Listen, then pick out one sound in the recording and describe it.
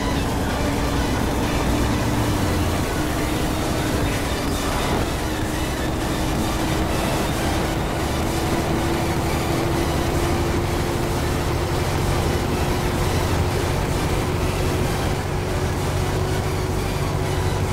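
A bus engine hums steadily as it drives along.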